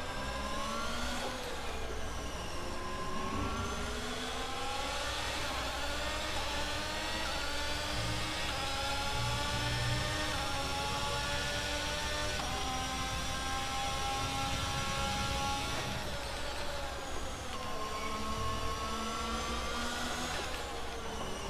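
A racing car engine roars at high revs, climbing in pitch through quick gear changes.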